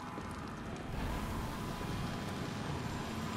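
A heavy metal door grinds open.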